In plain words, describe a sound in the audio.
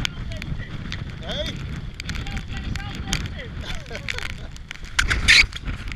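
A man shouts over the wind close to a microphone.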